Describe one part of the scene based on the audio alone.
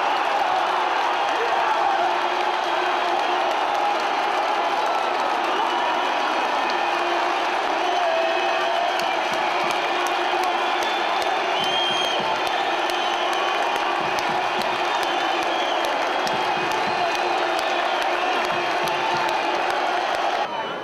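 A large stadium crowd chants and sings loudly and steadily.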